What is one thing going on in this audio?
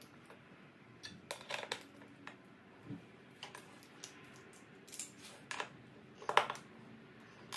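Metal parts knock and clink as they are handled.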